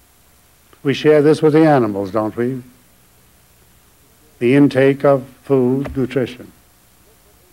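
An elderly man speaks calmly and slowly into a microphone, pausing between phrases.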